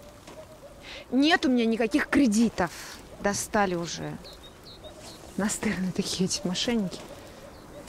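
A young woman speaks quietly into a phone.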